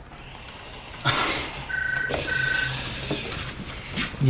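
A steam iron hisses as it presses cloth.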